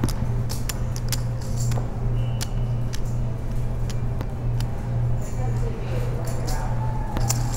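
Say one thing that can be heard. Poker chips click and clack together.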